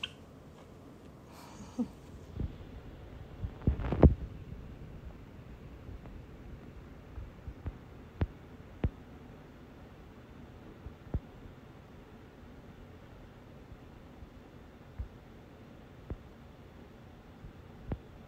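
A small bird chirps softly close by.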